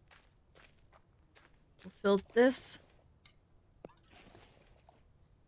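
Footsteps crunch on dry dirt ground.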